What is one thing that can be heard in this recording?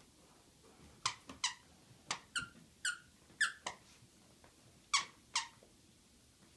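A squeaky toy squeaks sharply several times.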